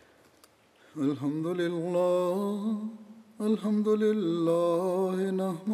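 A man chants in a long, drawn-out voice through a loudspeaker in a large echoing hall.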